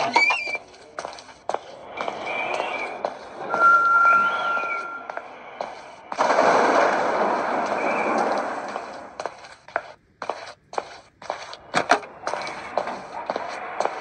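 Footsteps patter from a small tablet speaker.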